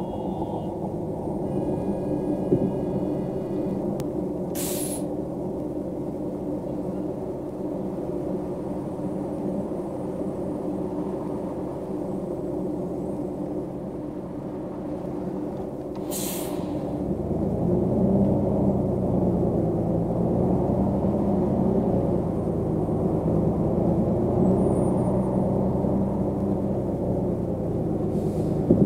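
A bus engine hums low and steady.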